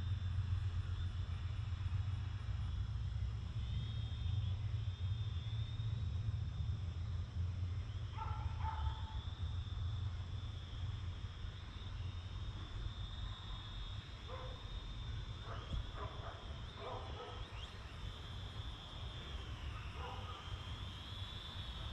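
Wind rumbles low against the microphone outdoors.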